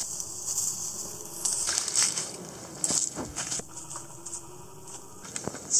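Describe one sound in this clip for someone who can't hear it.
Footsteps crunch on dry leaves and mulch.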